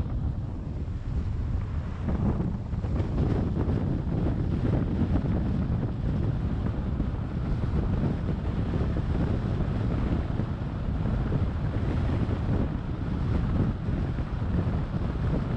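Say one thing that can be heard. A car's tyres rumble steadily on a paved road.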